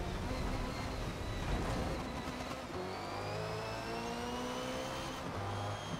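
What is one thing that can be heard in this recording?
A race car engine roars and climbs in pitch as the car speeds up.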